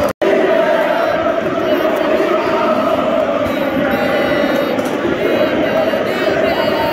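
A large crowd cheers throughout.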